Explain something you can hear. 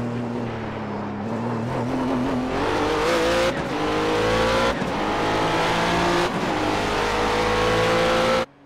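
A racing car engine roars and rises in pitch as it accelerates.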